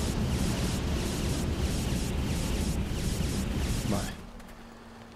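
Flames crackle and roar steadily.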